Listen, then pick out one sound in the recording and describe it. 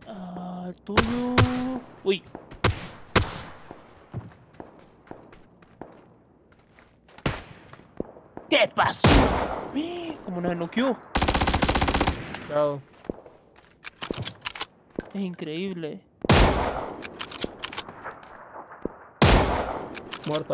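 A rifle fires loud, sharp shots, once in a rapid burst.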